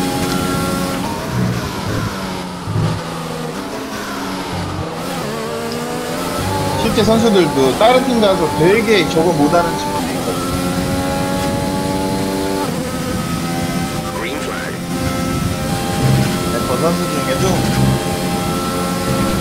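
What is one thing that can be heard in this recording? A racing car engine roars and whines, rising and falling in pitch as it shifts gears.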